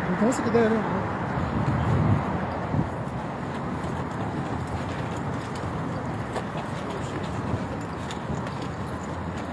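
Footsteps shuffle on pavement as a crowd moves along.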